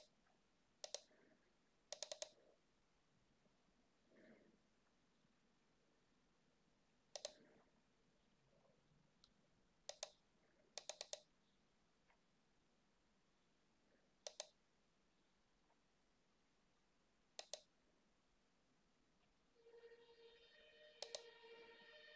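A computer mouse clicks now and then, close by.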